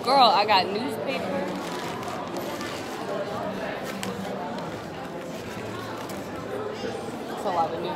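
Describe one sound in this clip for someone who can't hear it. Paper crinkles and rustles as it is unwrapped.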